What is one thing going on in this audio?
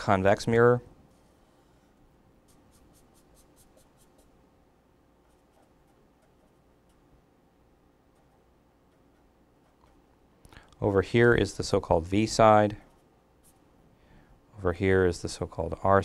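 A marker squeaks faintly across paper.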